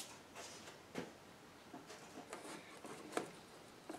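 A pane of mirror glass knocks against a wooden frame.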